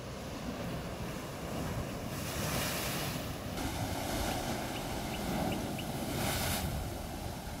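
Waves surge and splash between rocks.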